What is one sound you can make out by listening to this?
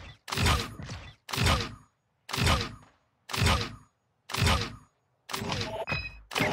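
Game sound effects whoosh and chime as each score line is added up.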